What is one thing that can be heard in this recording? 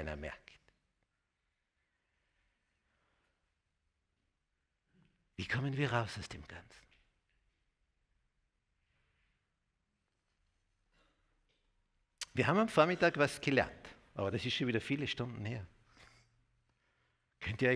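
An older man speaks with animation through a microphone, with long pauses.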